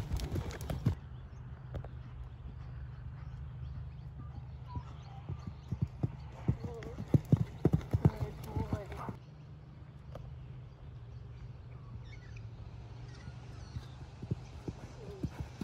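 A horse's hooves thud on soft sand.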